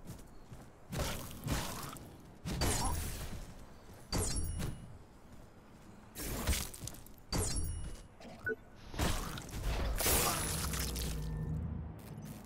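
Heavy blows and metal clangs strike again and again.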